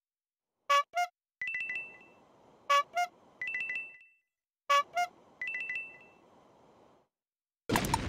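Coins chime brightly several times in a game.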